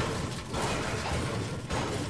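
A pickaxe strikes a metal crate with sharp clangs.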